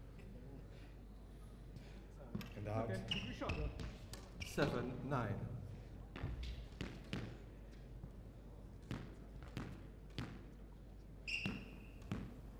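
A squash ball smacks sharply off racquets and walls in a rally.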